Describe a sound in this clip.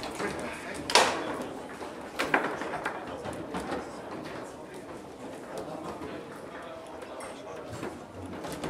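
Foosball rods clack and the ball knocks sharply against the table.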